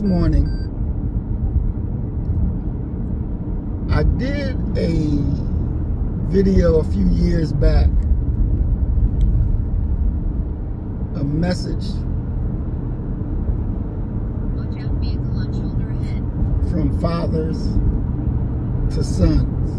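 A car engine hums low and steady inside a moving car.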